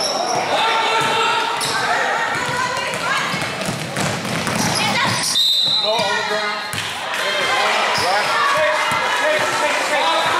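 A crowd of spectators cheers and shouts in a large echoing hall.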